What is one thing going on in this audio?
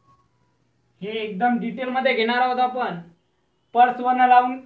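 A young man speaks clearly and close by.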